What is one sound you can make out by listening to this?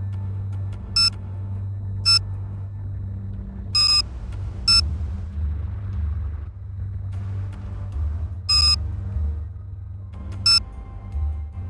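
A phone gives short electronic beeps as buttons are pressed.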